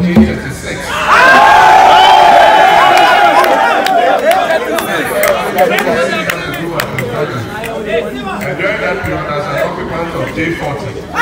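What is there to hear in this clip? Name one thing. A crowd of young people shouts and chants loudly outdoors.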